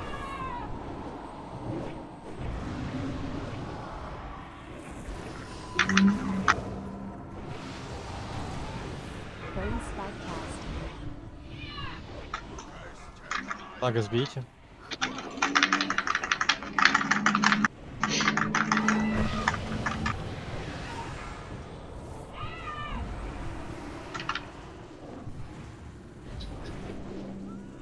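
Spell effects crackle and whoosh during a game battle.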